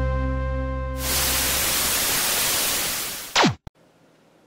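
Television static hisses loudly and steadily.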